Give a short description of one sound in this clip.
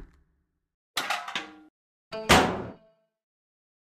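A metal locker door creaks open and clangs.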